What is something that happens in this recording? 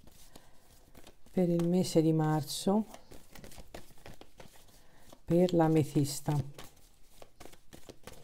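Playing cards rustle and flick as a hand shuffles a deck.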